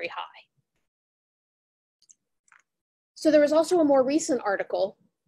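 A woman speaks calmly into a microphone over an online call.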